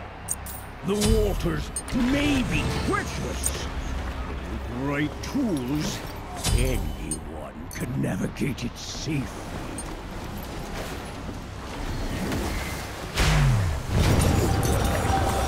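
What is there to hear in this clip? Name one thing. Game sound effects whoosh and clatter.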